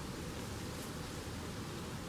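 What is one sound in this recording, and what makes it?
A shovel digs into soil.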